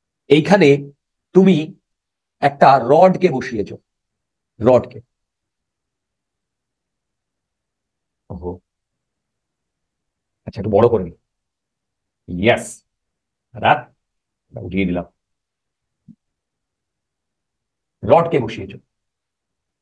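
A young man speaks calmly into a microphone, in short phrases with long pauses.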